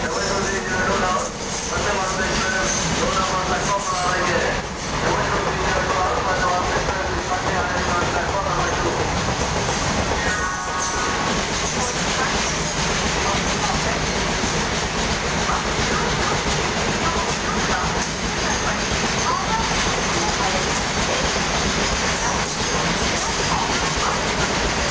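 A freight train rumbles and clatters past at speed, loud and close.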